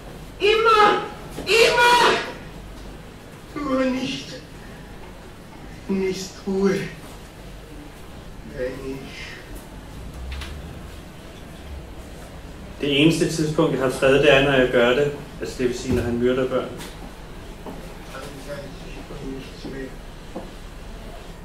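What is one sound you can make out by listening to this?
A man speaks with animation into a microphone, heard through loudspeakers in an echoing room.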